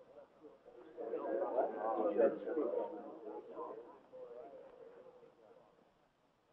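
A crowd of men murmurs.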